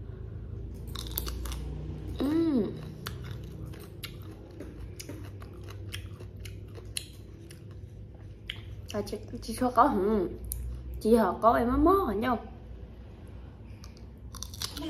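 Crisp fruit crunches as a woman bites and chews.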